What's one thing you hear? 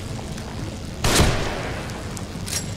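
A rifle fires a single loud shot that echoes in a tunnel.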